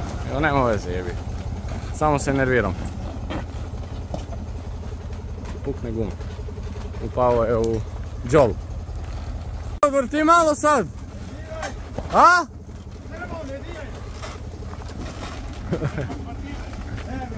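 A loaded wooden trailer rattles and creaks over a bumpy dirt track.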